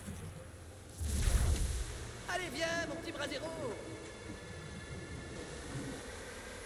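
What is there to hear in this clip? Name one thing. A deep whooshing rush swells and fades.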